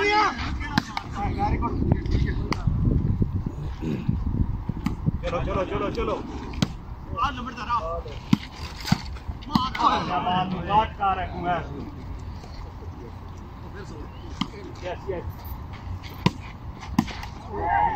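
A ball is struck with sharp slaps.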